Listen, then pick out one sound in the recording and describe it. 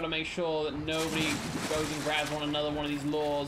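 Water rushes and splashes.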